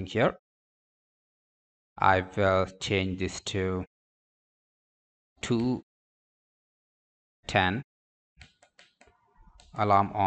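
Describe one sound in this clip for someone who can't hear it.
A small push button clicks softly a few times.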